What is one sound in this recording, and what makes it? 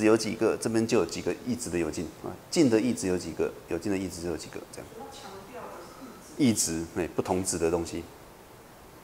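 A middle-aged man lectures calmly into a microphone.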